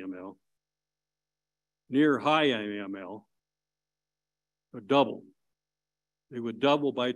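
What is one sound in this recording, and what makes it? An elderly man speaks calmly into a microphone, heard over an online call.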